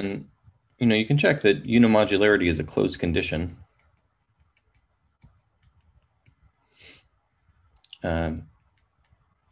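A man speaks calmly and closely into a microphone, as if lecturing.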